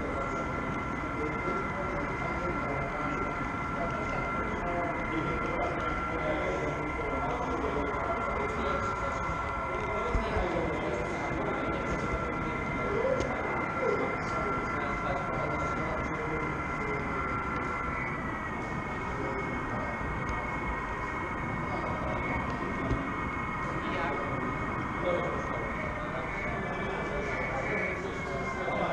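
A model train's electric motor whines steadily.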